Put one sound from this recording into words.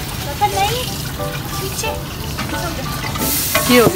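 Water pours from a jug into a metal pot.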